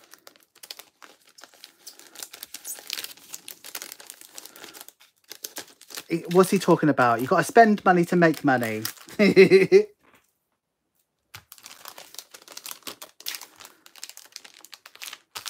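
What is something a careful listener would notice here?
Plastic wrapping crinkles and rustles under handling.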